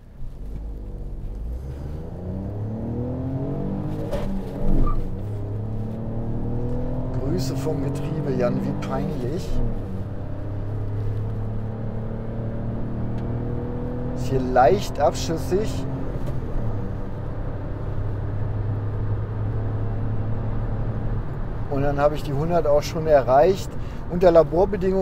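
A small car engine drones and revs up through the gears inside the cabin.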